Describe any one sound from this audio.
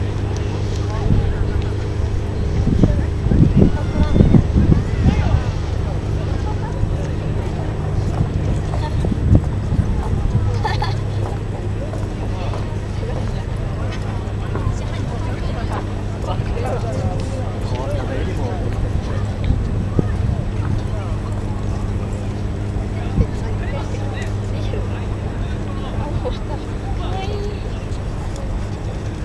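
A boat's engine hums steadily across the water.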